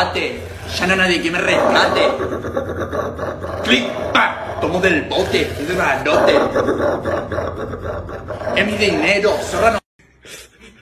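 A young man shouts loudly up close.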